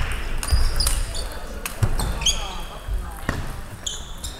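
A table tennis ball clicks against paddles and the table in a quick rally.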